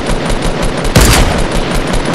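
A rifle fires a single loud, sharp shot.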